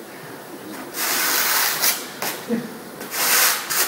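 A sponge scrubs wetly across a tile surface in quick strokes.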